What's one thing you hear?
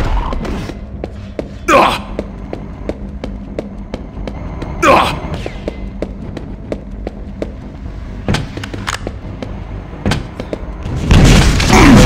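Quick footsteps thud steadily on a stone floor.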